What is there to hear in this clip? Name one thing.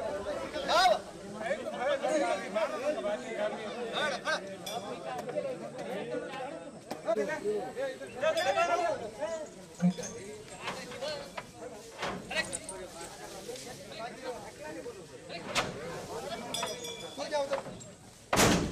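Several men call out commands loudly close by.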